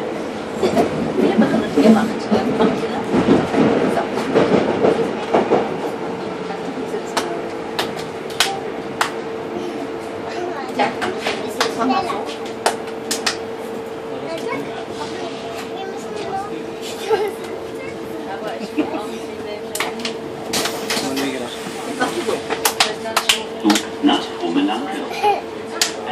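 Young girls chatter and laugh close by.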